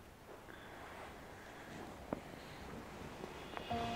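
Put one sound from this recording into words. A blanket rustles as it is pulled up.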